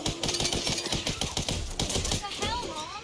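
A pistol fires several rapid shots.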